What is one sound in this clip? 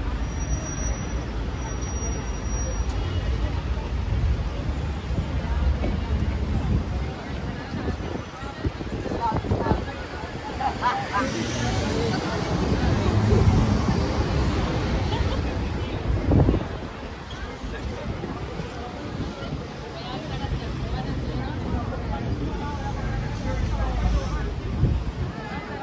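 A crowd of pedestrians murmurs and chatters nearby.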